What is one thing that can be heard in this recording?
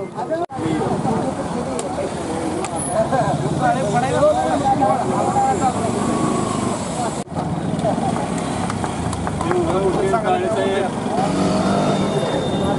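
A group of men talk and call out at once nearby, outdoors.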